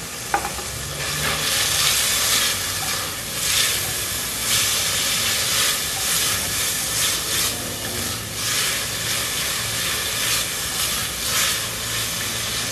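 A wooden spoon stirs a thick sauce in a pot.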